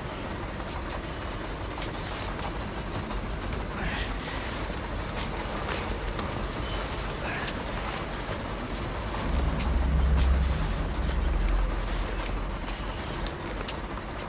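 Footsteps shuffle slowly on a hard floor.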